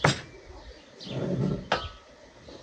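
Jam pours into a jar through a funnel.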